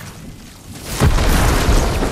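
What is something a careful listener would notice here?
A lightning bolt crackles and booms.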